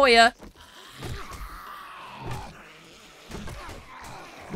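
A club thuds against a zombie.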